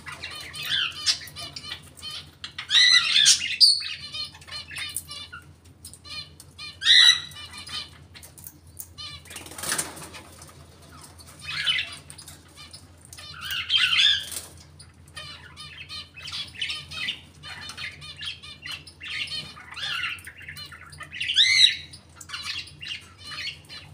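A parrot whistles and chirps loudly nearby.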